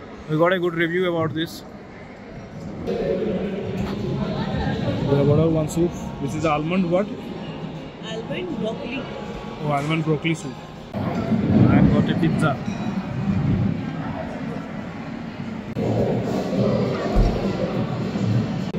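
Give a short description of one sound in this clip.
Diners chatter and murmur in a busy, echoing hall.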